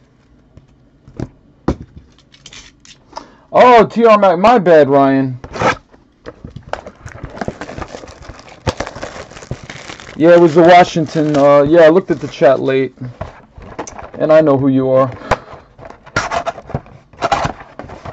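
A cardboard box knocks and scrapes as hands handle it.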